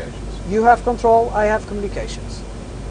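A man speaks briefly over a headset radio.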